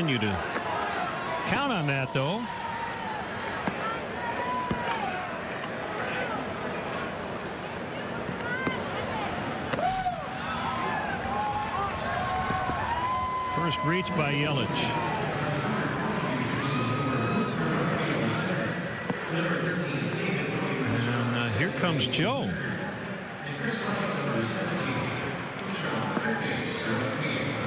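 A stadium crowd murmurs steadily outdoors.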